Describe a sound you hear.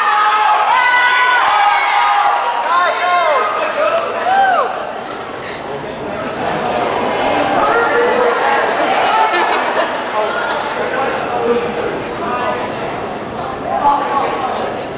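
A young woman speaks into a microphone over loudspeakers in a large echoing hall.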